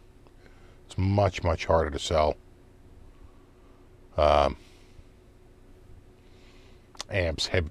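A middle-aged man speaks calmly and close to a microphone, in short bursts.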